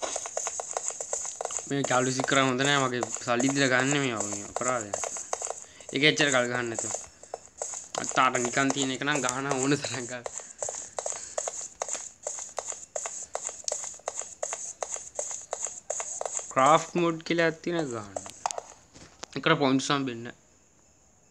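Quick footsteps patter on a wooden floor.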